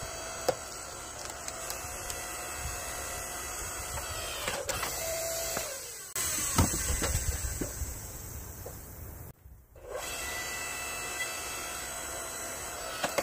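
A log splitter's motor hums steadily.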